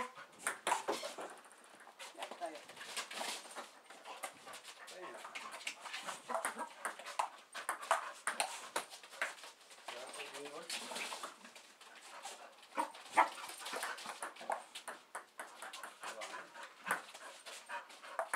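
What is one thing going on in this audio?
A ping pong ball clicks back and forth between paddles and a table.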